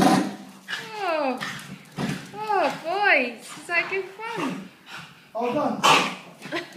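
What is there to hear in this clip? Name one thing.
A dog whines and yelps excitedly.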